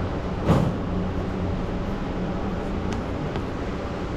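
A finger presses a plastic button with a soft click.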